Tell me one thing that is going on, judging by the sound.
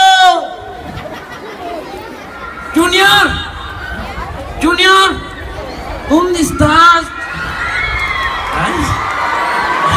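A crowd of children and adults chatters outdoors.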